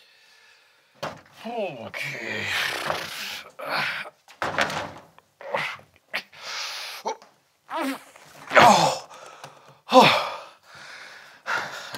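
A man talks loudly and with animation, close by.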